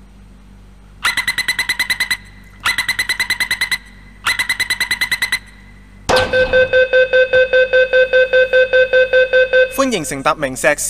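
A door warning chime beeps rapidly in repeated bursts.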